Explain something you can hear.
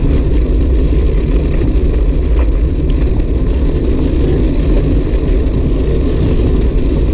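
Wind rushes and buffets loudly while riding a bicycle outdoors.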